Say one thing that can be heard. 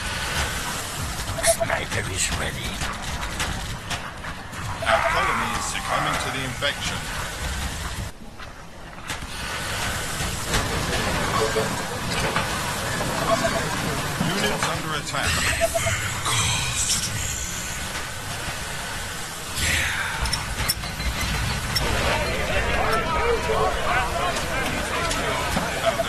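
Battle noises from a strategy game clatter and bang.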